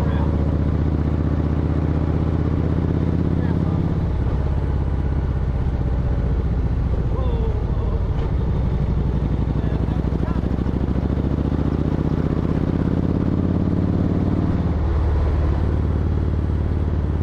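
A motorcycle engine hums steadily while riding, its pitch rising and falling.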